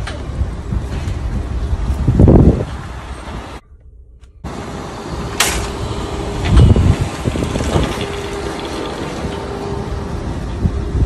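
Metal shopping carts rattle and clatter as they are pushed together.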